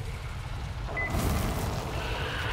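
Flames burst with a loud whoosh.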